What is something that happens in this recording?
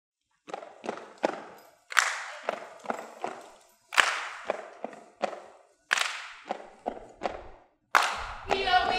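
Young women clap their hands in a rhythm.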